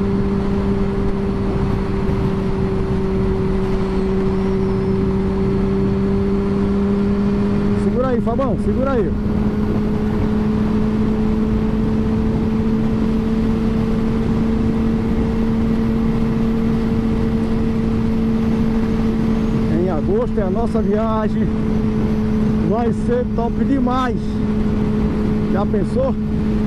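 A motorcycle engine hums steadily at a constant pace.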